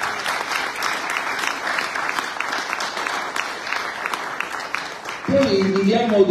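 An audience applauds in an echoing hall.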